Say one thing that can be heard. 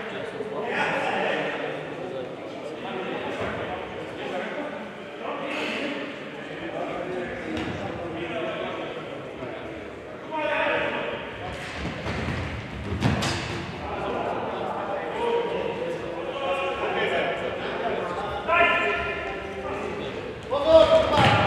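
Men shout to each other in a large echoing hall.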